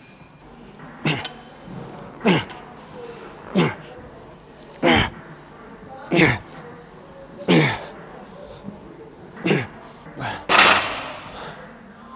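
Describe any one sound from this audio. A man grunts and exhales sharply with effort on each lift.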